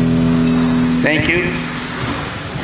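A man sings briefly into a microphone.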